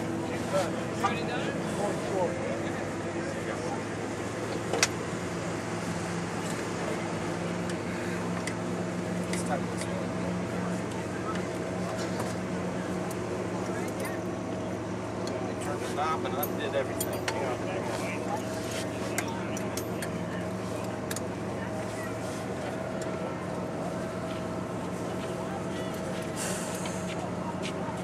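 An engine idles steadily nearby.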